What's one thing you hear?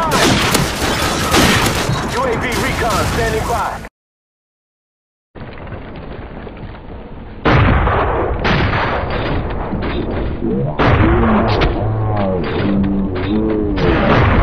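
Rapid gunfire rattles and bangs.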